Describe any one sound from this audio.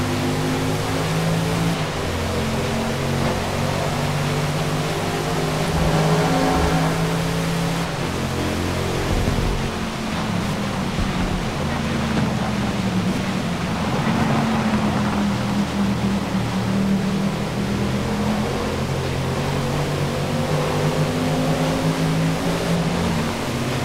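Rain hisses on a wet road.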